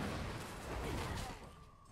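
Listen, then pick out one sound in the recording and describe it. Bodies scuffle and thud in a struggle.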